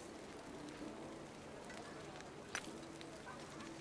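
A game menu makes a short click sound.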